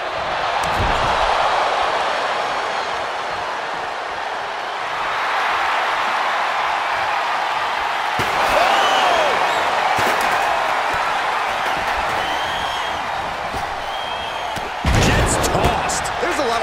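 Heavy thuds of bodies slam onto a canvas floor.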